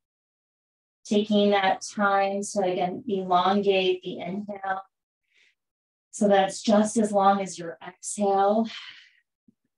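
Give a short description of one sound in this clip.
A woman speaks calmly and clearly, close to a microphone, with pauses.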